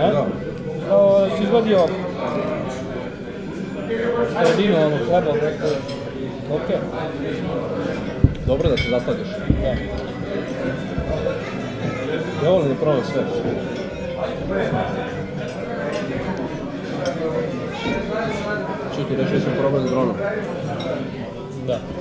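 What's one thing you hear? Cutlery clinks on a plate.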